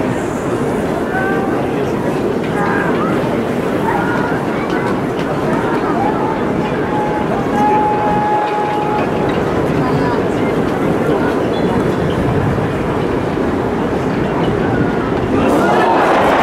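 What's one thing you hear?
A large crowd murmurs and calls out in an open stadium.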